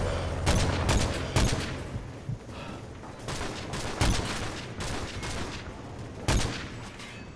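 Rifle shots crack loudly, a few seconds apart.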